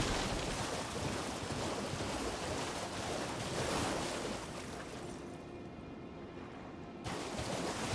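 Water splashes under a horse's hooves.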